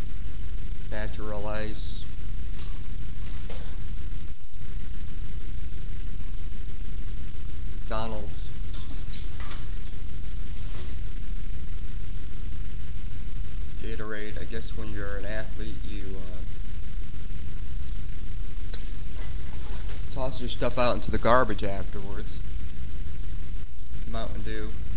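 A man talks close to a microphone in short bursts.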